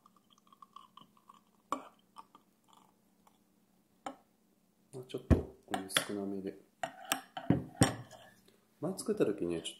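A spoon clinks against a cup as it stirs.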